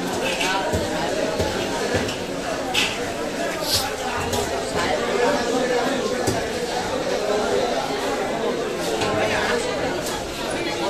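A fish is sliced against a fixed blade with wet, crunching thuds.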